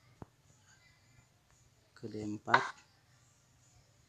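A chess piece clicks softly into place on a board.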